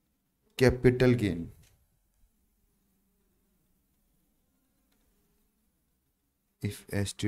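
A young man speaks calmly into a close microphone, with pauses.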